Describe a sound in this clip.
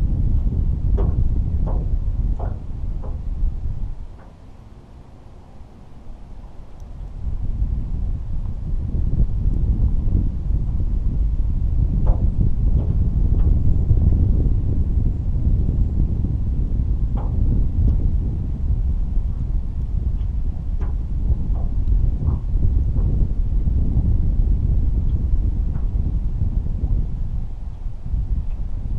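Small waves lap against the side of a boat.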